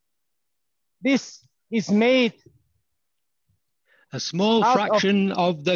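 An older man speaks calmly over an online call, pausing between phrases.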